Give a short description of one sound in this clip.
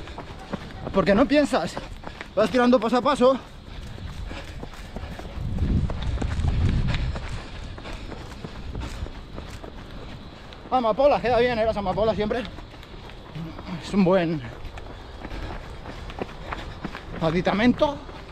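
A man talks close by, slightly out of breath, in short bursts.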